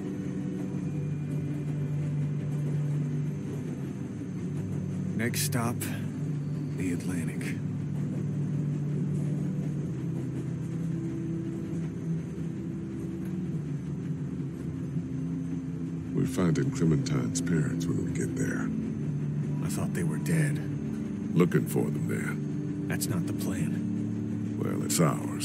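A train engine rumbles steadily.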